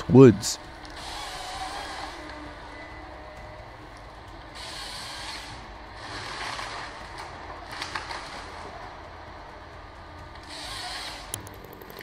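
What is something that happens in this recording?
A harvester saw buzzes through a log in short bursts.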